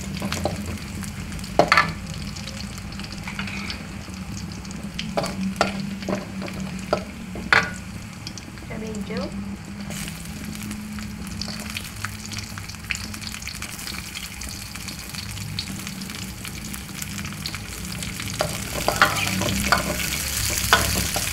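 A metal spatula scrapes and clanks in a metal wok.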